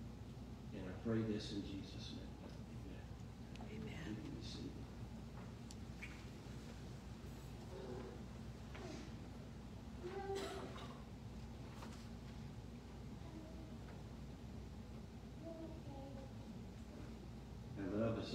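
A man speaks slowly and calmly through a microphone in an echoing hall.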